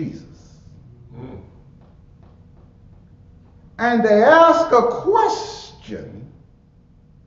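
A man preaches with feeling into a microphone in an echoing hall.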